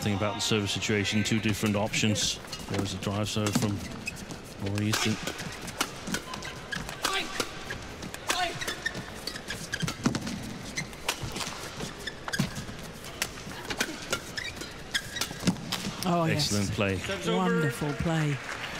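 Rackets smack a shuttlecock back and forth in quick rallies.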